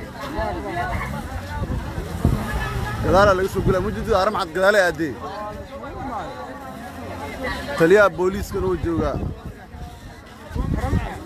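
A crowd of men talks and shouts excitedly close by, outdoors.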